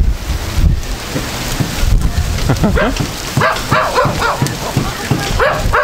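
Wind rustles palm leaves overhead.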